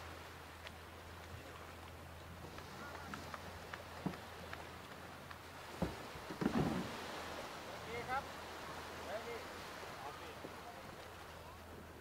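Small waves lap gently on a sandy shore.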